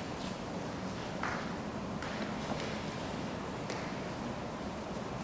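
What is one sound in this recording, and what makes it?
Footsteps move slowly across a hard floor in a large, echoing room.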